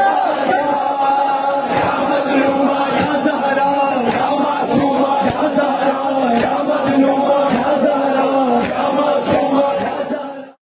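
A crowd of men chant along loudly.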